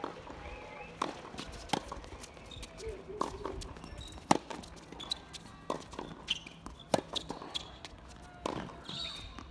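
Tennis balls are struck with sharp pops, back and forth, outdoors.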